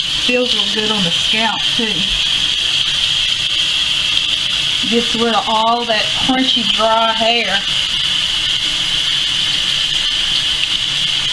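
Water runs steadily from a tap into a metal sink.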